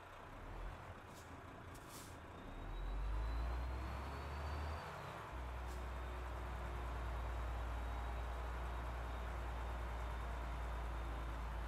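A truck engine rumbles low and steady as the truck moves slowly.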